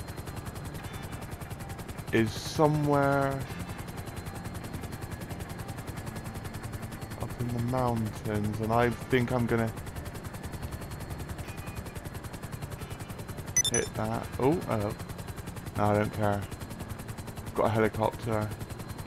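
A helicopter's rotor thumps steadily.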